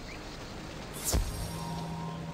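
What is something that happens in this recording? A magical whoosh sweeps down sharply.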